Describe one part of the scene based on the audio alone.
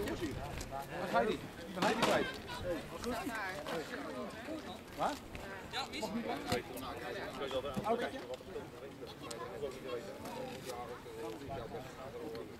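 A crowd of men and women talk and chatter nearby, outdoors.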